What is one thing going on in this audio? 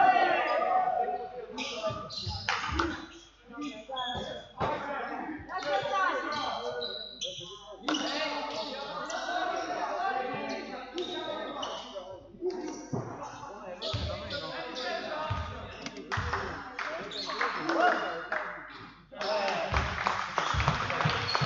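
Spectators chatter nearby.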